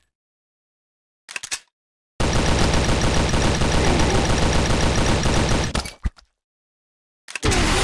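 A rifle is reloaded with a metallic click.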